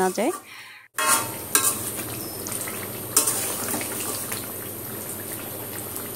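A spatula scrapes and stirs in a metal pot.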